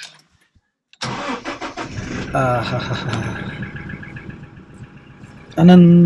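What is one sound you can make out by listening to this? A car engine starts and idles steadily.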